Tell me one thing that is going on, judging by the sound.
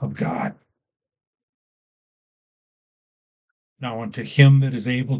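An older man reads aloud calmly, close to a microphone.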